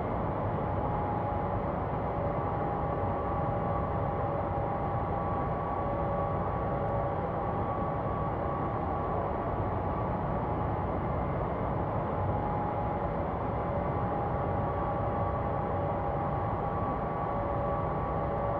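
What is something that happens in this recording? Jet engines drone steadily with a high whine.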